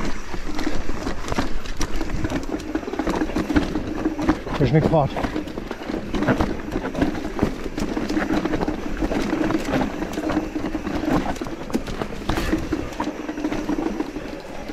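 Bicycle tyres crunch and rattle over a rough dirt trail.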